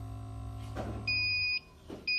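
An electronic device beeps.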